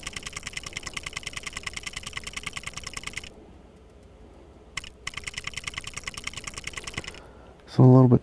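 Rapid game menu ticks sound as items scroll by.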